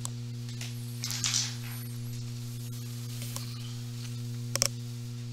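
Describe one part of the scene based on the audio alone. Playing cards rustle and slide as they are handled.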